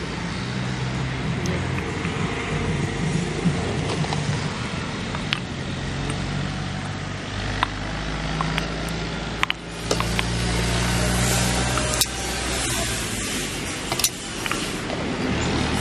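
A metal ladle clinks against the rim of a metal pot.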